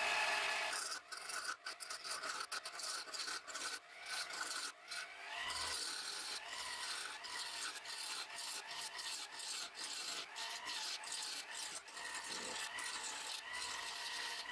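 A chisel scrapes and shaves against spinning wood in rough bursts.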